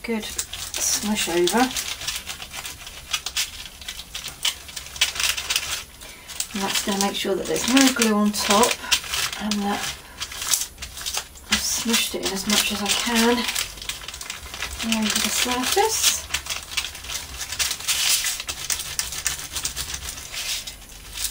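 Hands rub and smooth crinkly paper with a soft, scratchy rustle.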